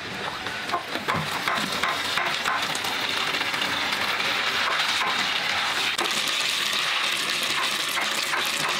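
Water runs steadily from a tap into a basin.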